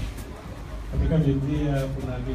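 A man speaks into a microphone, heard through a loudspeaker in an echoing room.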